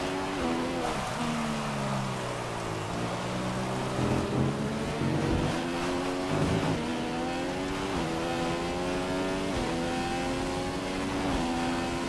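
A racing car engine whines, dropping in pitch under braking and rising through the gears.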